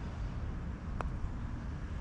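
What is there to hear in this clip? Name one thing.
A golf putter taps a ball with a light click.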